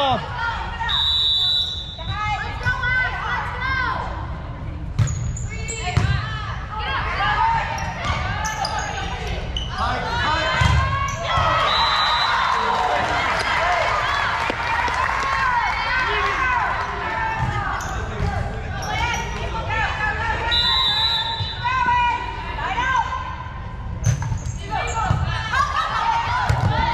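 Sneakers squeak sharply on the hardwood floor.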